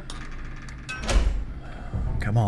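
A heavy metal lever clunks into place.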